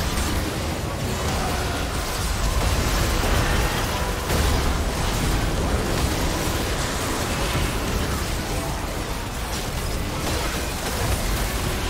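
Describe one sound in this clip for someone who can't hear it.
Magic spells whoosh and crackle in a chaotic battle.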